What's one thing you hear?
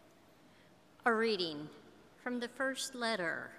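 A middle-aged woman speaks calmly into a microphone in an echoing hall.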